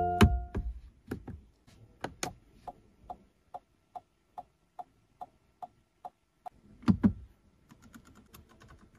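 A car's turn signal ticks steadily.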